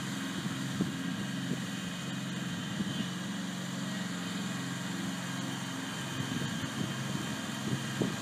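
A mower engine hums steadily nearby.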